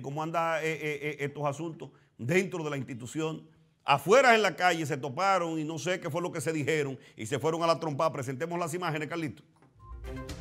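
A man speaks emphatically into a close microphone.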